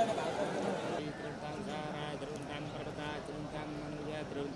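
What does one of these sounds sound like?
An elderly man chants steadily close by.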